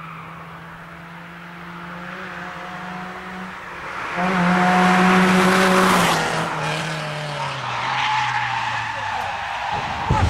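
A car engine roars as the car speeds closer, passes and fades away with a falling pitch.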